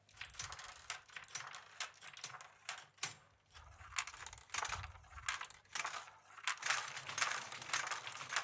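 Small metal parts click as a man adjusts a mechanism.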